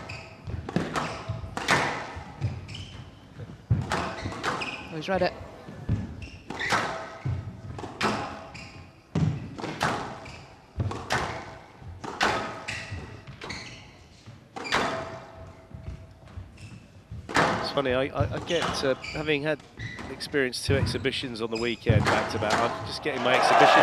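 A squash ball smacks hard against the walls in a rapid rally, echoing around a large hall.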